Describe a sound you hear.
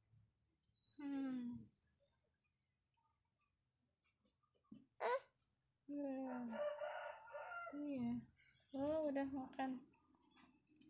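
A cat meows repeatedly nearby.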